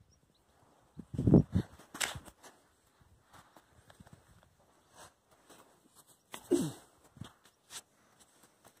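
A dog snuffles and snorts with its nose in the sand.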